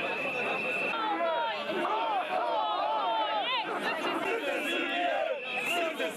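Several men talk loudly nearby in a crowd.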